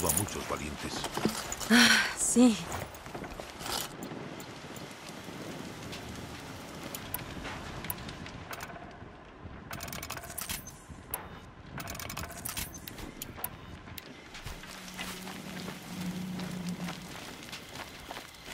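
Fire crackles from a burning wreck.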